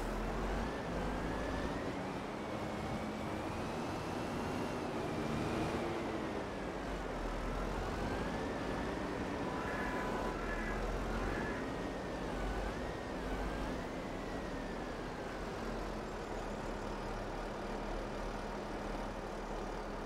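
A wheel loader's engine rumbles steadily and whines as it revs.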